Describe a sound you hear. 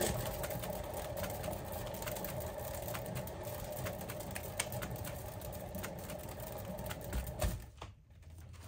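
A motorised spinner whirs steadily, then stops.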